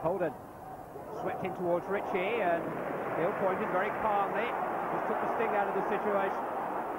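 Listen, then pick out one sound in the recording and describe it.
A stadium crowd cheers and roars with excitement.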